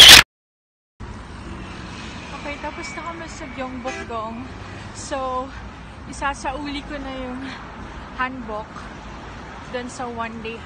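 A young woman talks cheerfully close to a phone microphone.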